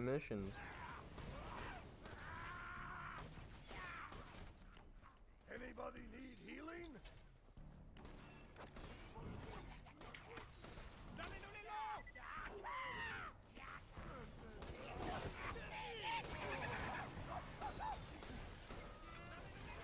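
A rifle fires sharp shots in bursts.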